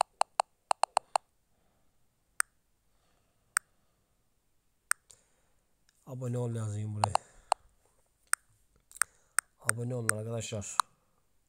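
Phone keyboard taps click sharply now and then.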